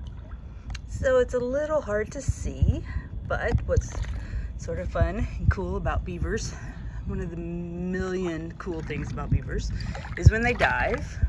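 A young beaver whines in high, wavering cries.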